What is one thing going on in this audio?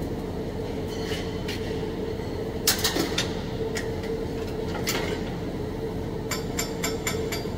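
A hand tool clinks and taps against metal.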